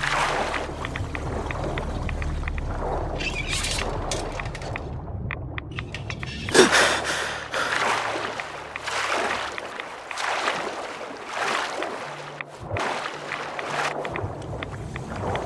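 Water swishes and gurgles as a swimmer moves through it underwater.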